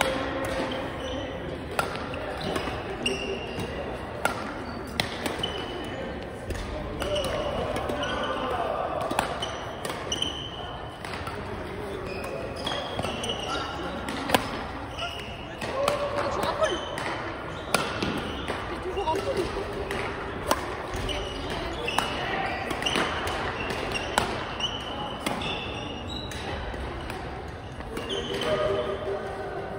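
Voices of men and women chatter in a large echoing hall.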